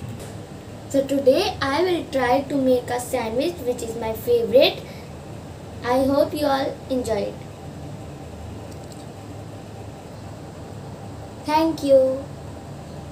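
A young girl talks cheerfully and close by.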